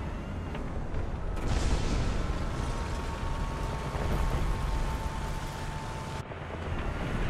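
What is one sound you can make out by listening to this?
A tank's tracks clatter and squeak as it moves.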